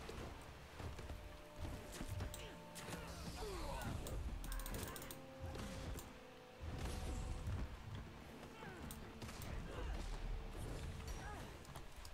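Weapon blows strike with sharp impacts.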